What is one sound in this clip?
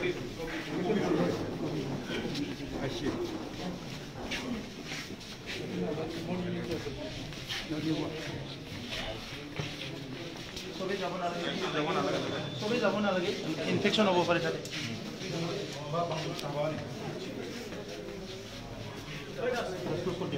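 A crowd of men talk and shout over one another in an echoing corridor.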